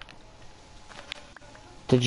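Blocks break with crunching pops in a video game.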